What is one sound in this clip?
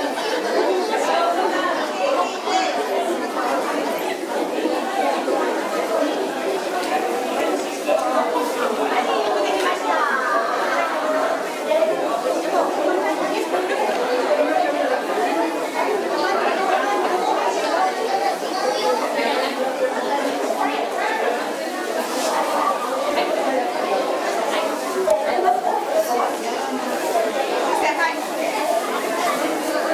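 A crowd of people chatters throughout in a busy indoor hall.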